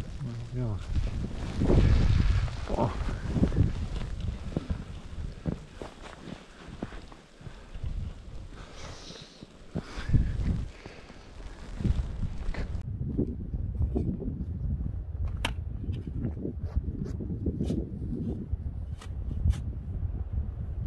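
Strong wind gusts and roars outdoors.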